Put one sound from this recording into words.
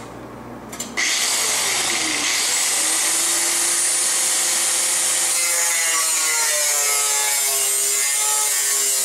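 An angle grinder starts up and whines loudly and steadily as it grinds.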